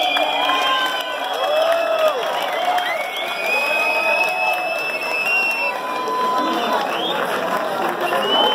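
Loud electronic music with gliding, warbling tones plays over loudspeakers.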